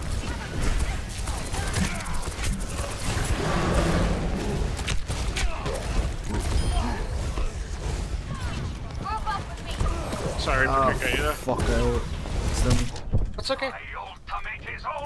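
A weapon fires crackling electric bolts.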